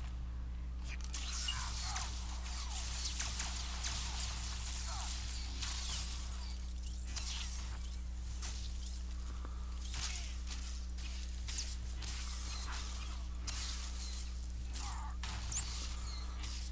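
Blaster shots and blows crackle and thud in a fast fight.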